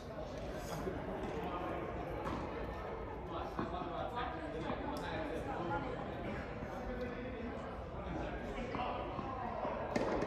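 Tennis balls are struck by rackets with sharp pops, echoing in a large indoor hall.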